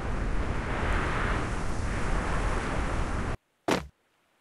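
Wind rushes loudly past during a glide through the air.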